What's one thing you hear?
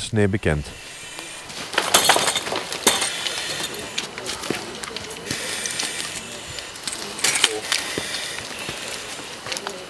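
Burnt debris clatters and scrapes as it is raked.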